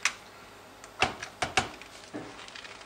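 A laptop lid clicks open.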